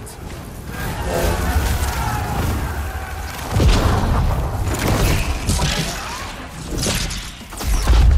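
Bright bolts of energy crash down with deep booming rumbles.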